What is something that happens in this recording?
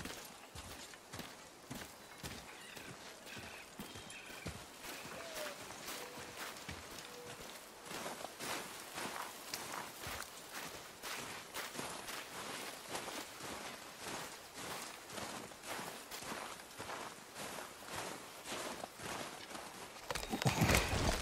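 Footsteps crunch on snow and gravel at a steady walking pace.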